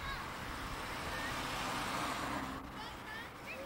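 A car drives past close by on the street.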